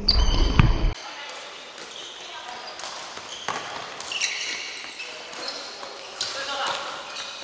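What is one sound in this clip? Sneakers squeak sharply on a gym floor, echoing in a large hall.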